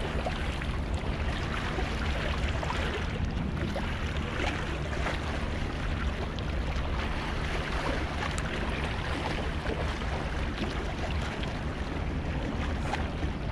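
Small waves lap and splash against rocks.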